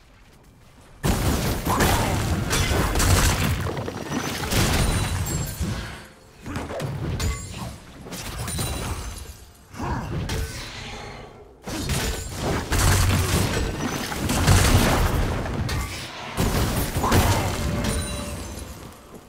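Game spell effects blast and crackle during a fight.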